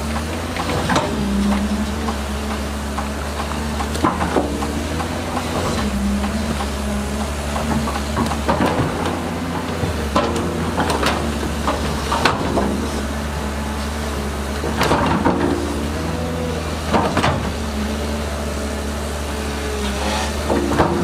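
Rocks and gravel scrape and clatter as a bulldozer blade pushes them.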